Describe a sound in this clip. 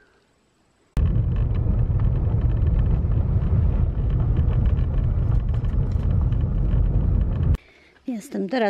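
Tyres rumble steadily over a gravel road inside a moving car.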